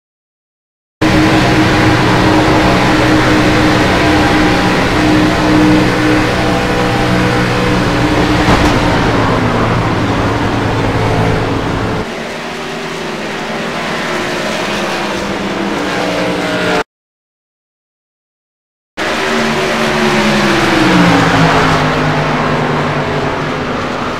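Other race car engines drone close by and pass.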